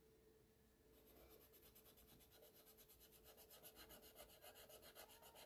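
Paper is rubbed with quick, rhythmic strokes.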